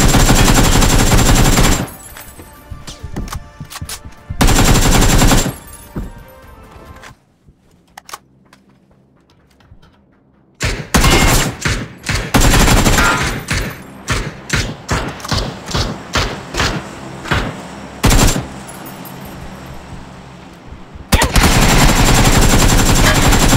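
Rapid gunshots fire in bursts indoors.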